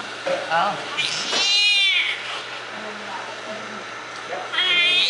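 A newborn baby cries loudly in short bursts.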